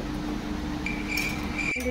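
A metal spoon clinks against a metal bowl.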